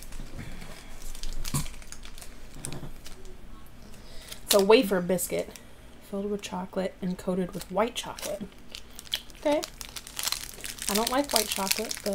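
A plastic wrapper crinkles as it is unwrapped.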